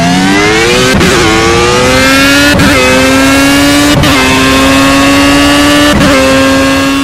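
A racing car's gearbox clicks sharply with each upshift.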